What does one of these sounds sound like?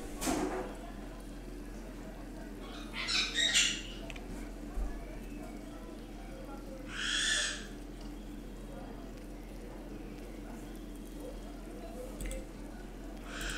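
Burger patties sizzle on a hot grill.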